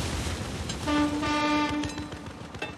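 A boat horn blows a short, steady blast.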